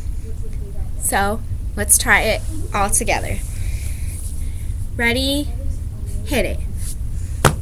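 A young girl speaks close by in short, lively bursts.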